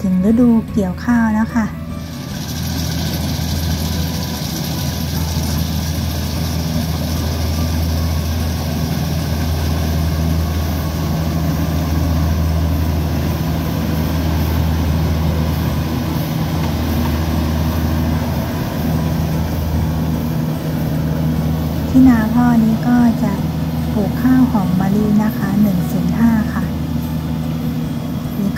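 A combine harvester engine drones steadily nearby.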